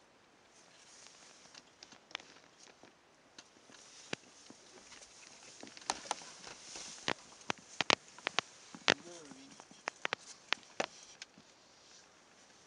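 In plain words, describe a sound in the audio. Large animals shuffle and thud on the ground nearby.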